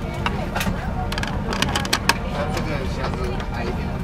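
A plastic cup holder snaps shut with a click.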